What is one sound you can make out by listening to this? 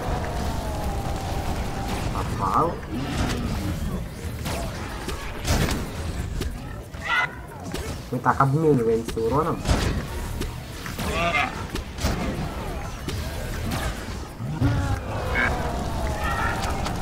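Magic blasts crackle and burst in quick bursts.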